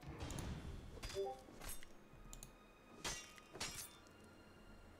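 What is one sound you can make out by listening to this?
Sticky webbing tears as it is cut.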